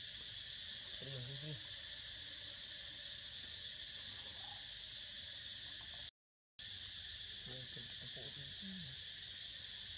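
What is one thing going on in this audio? A young monkey squeaks in short high calls.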